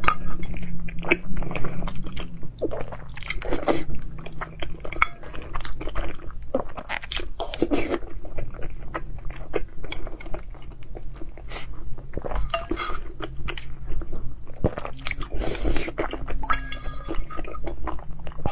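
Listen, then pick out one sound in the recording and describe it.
A spoon and chopsticks clink against a stone bowl.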